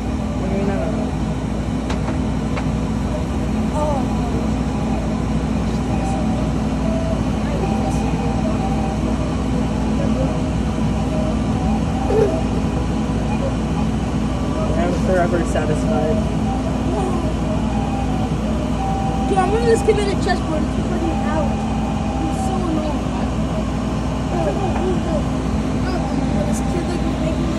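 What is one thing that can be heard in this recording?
A laser cutter head whirs as it moves back and forth.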